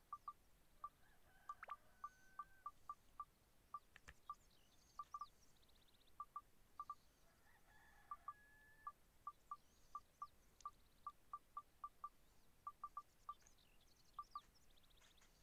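Short electronic menu beeps tick in quick succession.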